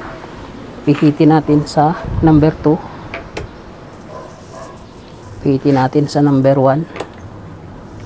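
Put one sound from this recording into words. Plastic clicks and rattles as a fan grille is handled.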